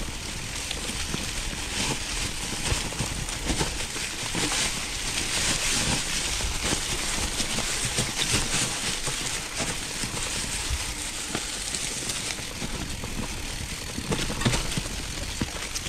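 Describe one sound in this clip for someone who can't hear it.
A bicycle rattles and clatters over bumps on a rough trail.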